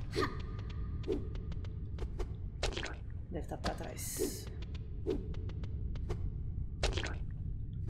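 Short whooshing and chiming sound effects play again and again.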